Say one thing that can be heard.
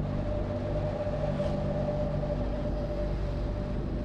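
A motorcycle passes by in the other direction.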